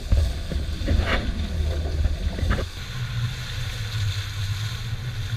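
Water splashes and rushes against a boat's hull.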